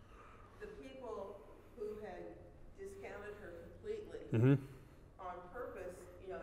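A man speaks calmly in a large echoing hall.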